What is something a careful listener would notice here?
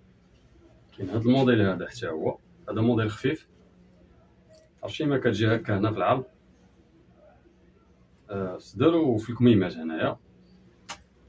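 A man speaks calmly and clearly close by, in short bursts.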